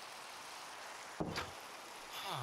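A wooden door creaks open and shuts with a knock.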